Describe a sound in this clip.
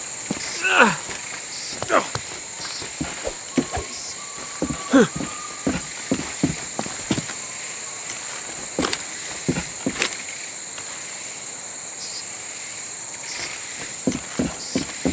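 Footsteps run through leafy undergrowth.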